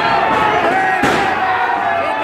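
A wrestler's body slams onto the ring mat with a loud thud.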